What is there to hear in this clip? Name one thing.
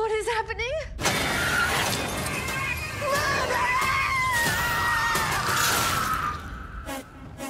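A woman screams loudly.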